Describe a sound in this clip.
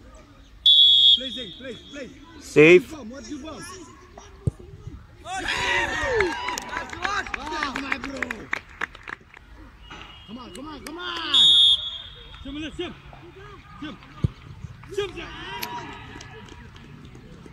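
Young men shout and cheer at a distance outdoors.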